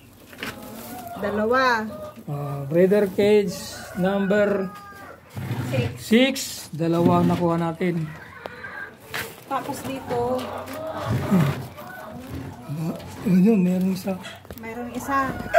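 A woman talks close by, with animation.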